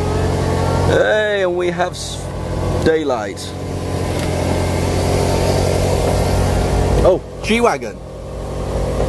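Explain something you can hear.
A car's folding roof whirs and whines as its motors move it.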